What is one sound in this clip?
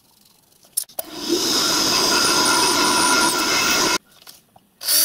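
A drill whines as it bores into metal.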